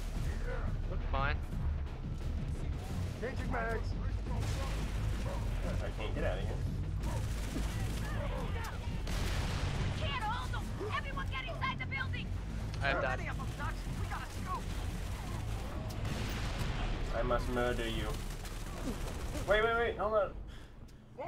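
A low rumble of explosions and battle noise fills the background.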